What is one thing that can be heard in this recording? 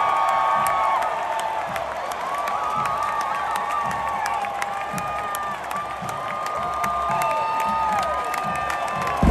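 A marching band plays brass tunes loudly outdoors.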